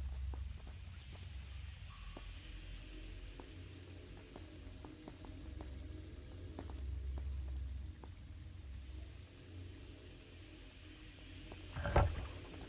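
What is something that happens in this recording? Footsteps patter quickly across a stone floor.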